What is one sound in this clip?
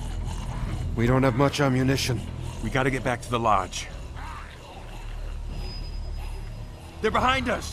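A man speaks urgently.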